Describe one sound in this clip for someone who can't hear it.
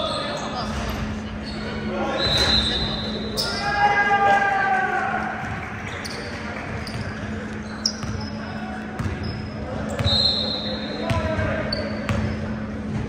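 Young players shout to each other across the court.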